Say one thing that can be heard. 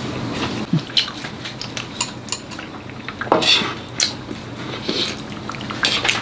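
A woman chews and slurps food close by.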